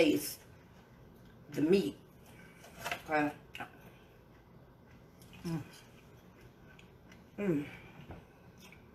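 Utensils clink against a dish.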